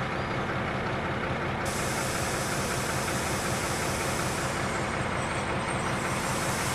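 Steel wheels roll and clatter along rails.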